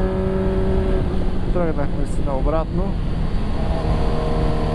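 A motorcycle engine revs up and down quickly during a gear change.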